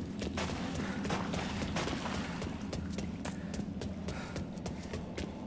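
Footsteps echo through a tunnel.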